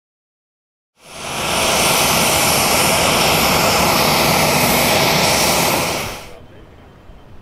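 A helicopter engine whines loudly nearby.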